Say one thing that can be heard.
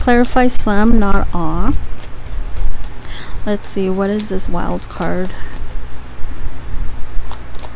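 Playing cards rustle and slap as they are shuffled by hand.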